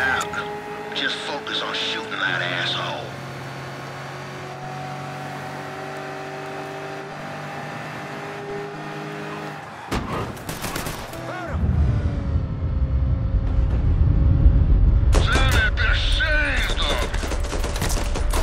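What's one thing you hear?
A car engine hums steadily and revs.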